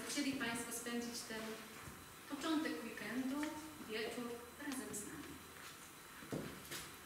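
A young woman speaks calmly into a microphone in an echoing hall.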